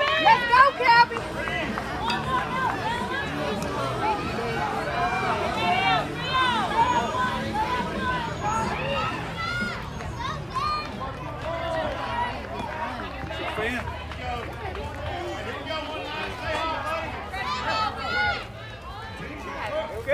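Young children shout and cheer across an open field.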